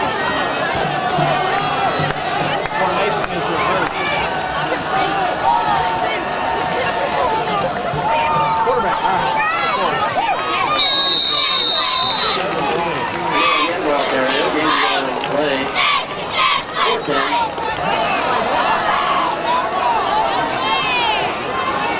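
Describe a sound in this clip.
A crowd of spectators cheers and shouts from the stands outdoors.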